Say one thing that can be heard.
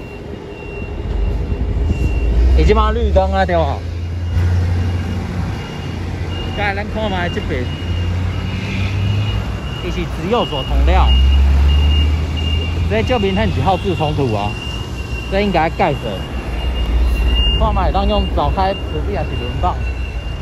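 Heavy trucks rumble past with deep engine noise.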